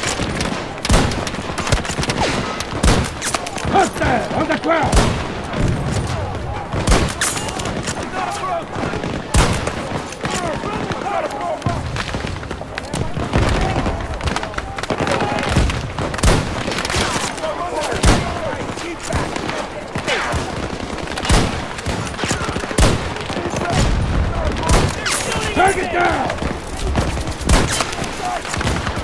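Rifle shots crack loudly again and again.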